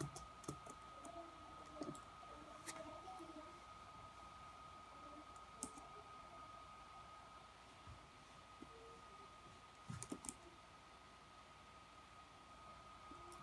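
Fingers tap and click on a laptop touchpad.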